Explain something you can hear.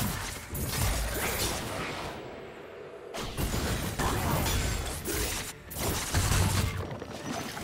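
Game combat effects clash and crackle in quick bursts.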